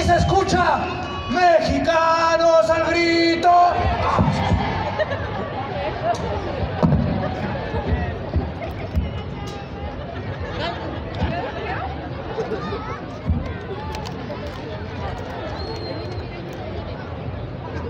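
Loud music plays through large loudspeakers outdoors.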